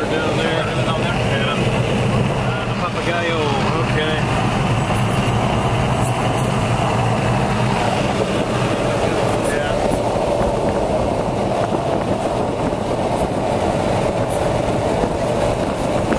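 Road noise and wind rush steadily past the car.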